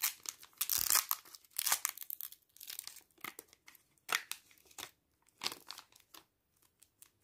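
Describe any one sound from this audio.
A foil packet crinkles and rustles in hands.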